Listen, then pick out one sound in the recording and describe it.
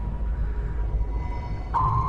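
Bubbles rise and gurgle underwater.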